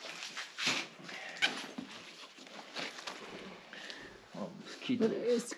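A bag rustles and scrapes as things are handled.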